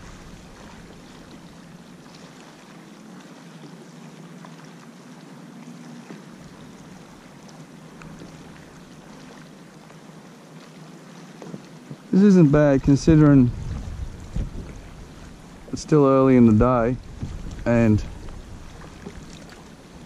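Water laps gently against the hull of a small boat.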